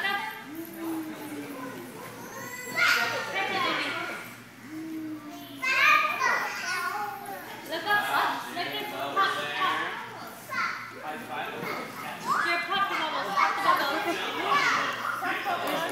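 A man talks to children.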